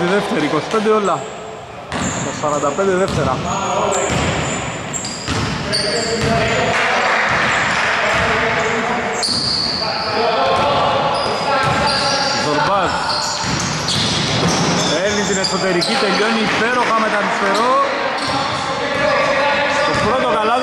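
Players shout to each other across a large echoing hall.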